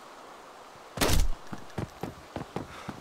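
Footsteps thud on a hard floor indoors.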